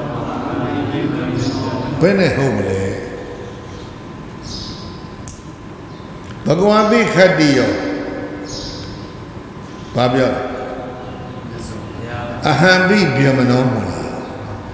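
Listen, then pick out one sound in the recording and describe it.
An elderly man chants slowly into a microphone in a drawn-out, pitched voice.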